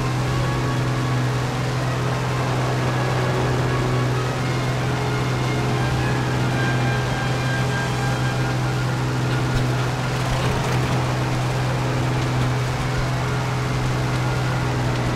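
Wind rushes past an aircraft in flight.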